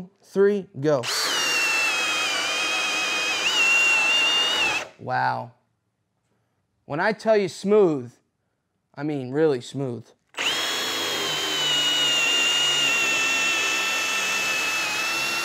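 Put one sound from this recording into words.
A cordless drill whirs steadily as it bores into wood.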